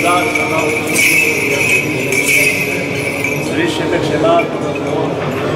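Men chant slowly in an echoing hall.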